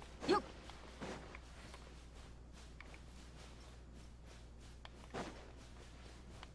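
Footsteps patter quickly on sand.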